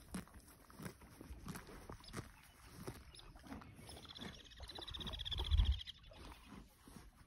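A horse tears and munches grass up close.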